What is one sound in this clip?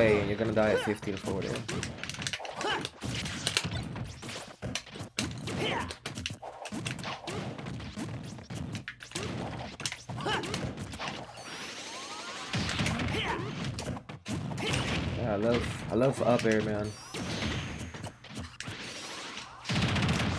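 Game punches and blasts thud and crackle rapidly.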